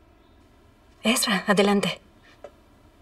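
A young woman speaks calmly up close.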